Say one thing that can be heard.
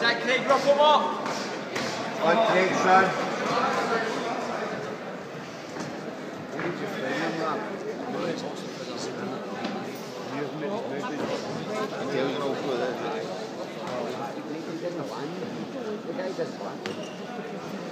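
A crowd of spectators murmurs and shouts in a large echoing hall.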